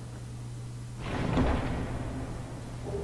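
A heavy chest creaks open.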